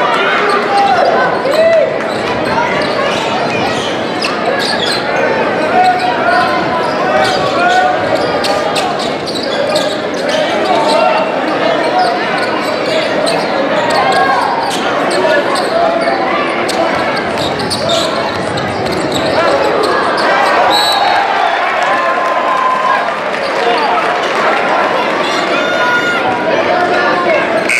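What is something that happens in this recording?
A crowd cheers and chatters loudly in a large echoing gym.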